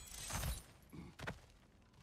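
A warrior climbs a wooden wall with creaking and thuds.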